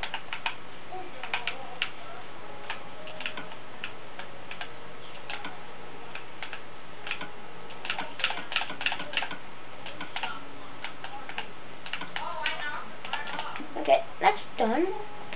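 Soft game menu clicks tick repeatedly.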